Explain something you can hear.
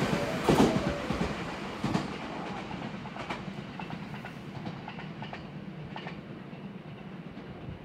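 A train's roar fades away into the distance.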